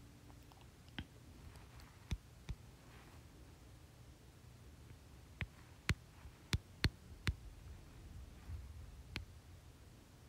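Phone keyboard taps click sharply now and then.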